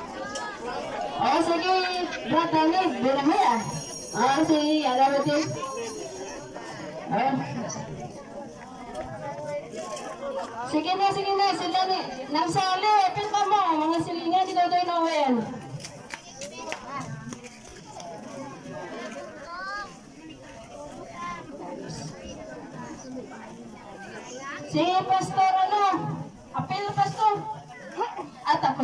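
Several people sing slowly together outdoors.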